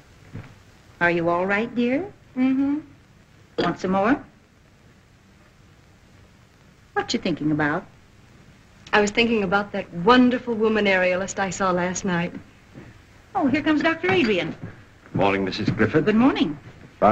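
A young woman speaks softly.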